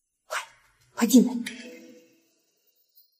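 A young man speaks close by.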